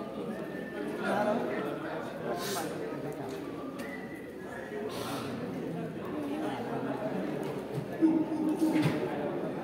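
Young men shout and call out in an echoing covered space.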